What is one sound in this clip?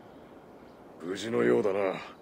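A man asks a question calmly.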